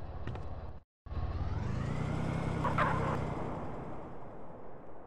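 A car engine revs and roars as a car drives off.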